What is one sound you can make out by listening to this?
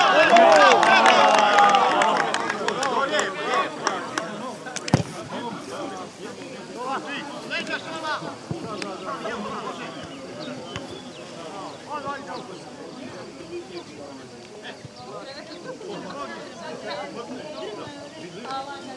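Men shout and call out across an open playing field outdoors.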